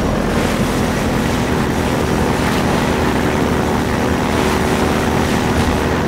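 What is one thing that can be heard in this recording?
A helicopter's gun fires rapid bursts.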